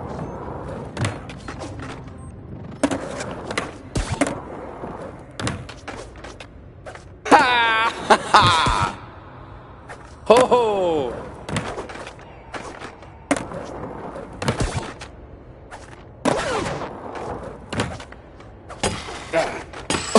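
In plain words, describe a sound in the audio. A skateboard lands with sharp clacks.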